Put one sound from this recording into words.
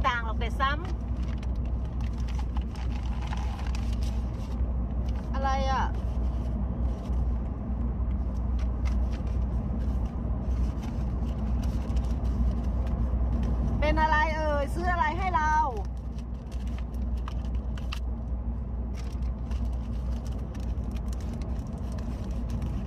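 Paper and cardboard rustle and crinkle.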